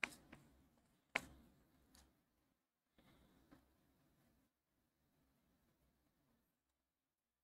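A pencil scratches softly on paper.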